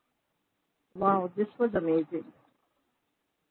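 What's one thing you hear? A woman speaks calmly and warmly into a microphone.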